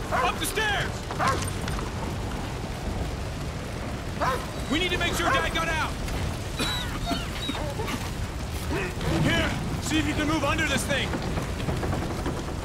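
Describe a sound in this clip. Fire crackles.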